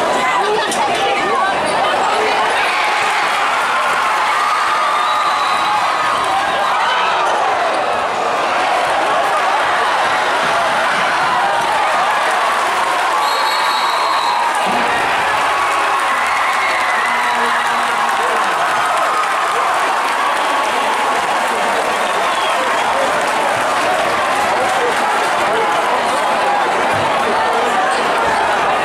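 A large crowd cheers and shouts in a big echoing gym.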